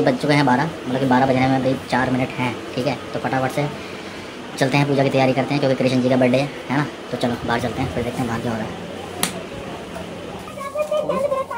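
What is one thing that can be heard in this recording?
A young man talks calmly, close to the microphone.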